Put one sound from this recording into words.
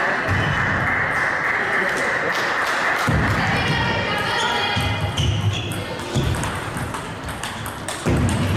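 A table tennis ball clicks quickly back and forth off paddles and a table.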